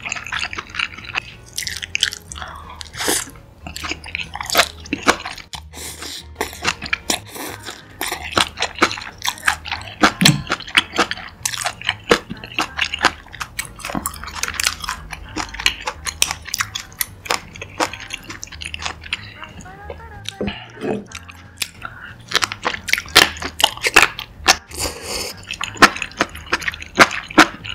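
A young woman chews food wetly close to a microphone.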